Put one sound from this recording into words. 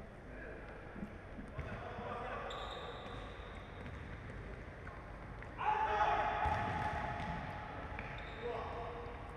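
A ball thumps as it is kicked and bounces.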